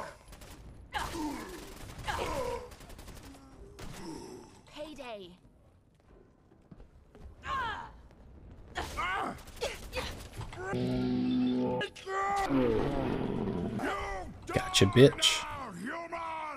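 Gunfire and explosions boom in a game.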